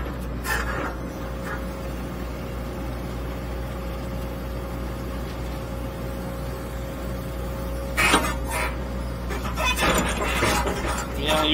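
A digger bucket scrapes and digs into soil.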